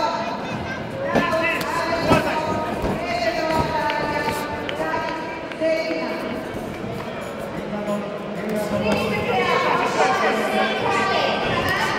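Gloved punches and kicks thud against padding.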